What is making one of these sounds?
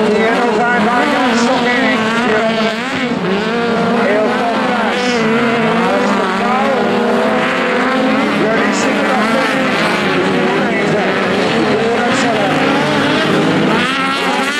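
Several racing car engines roar and rev loudly, rising and falling in pitch.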